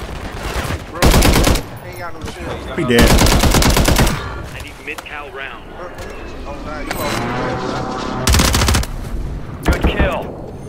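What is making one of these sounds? Gunfire bursts out in loud, sharp volleys.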